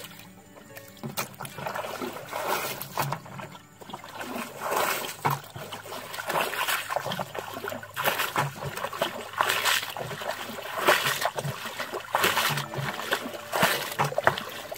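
Water pours from a bucket and splashes into a muddy puddle.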